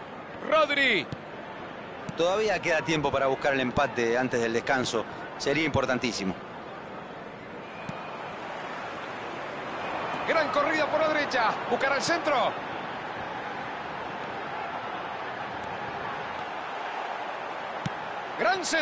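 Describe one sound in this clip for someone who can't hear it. A large stadium crowd roars steadily in the background.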